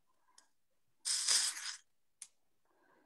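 Stiff card slides and rustles across paper.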